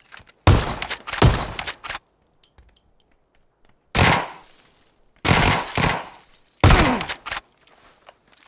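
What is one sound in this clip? Loud gunshots ring out in bursts with a reverberating echo.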